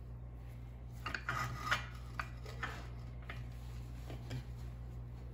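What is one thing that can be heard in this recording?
A chisel scrapes and chatters against spinning wood.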